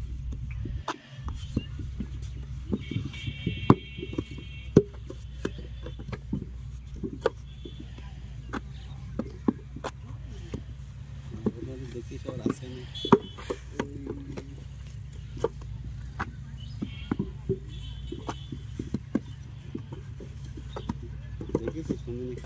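Wet clay slaps into a wooden mould.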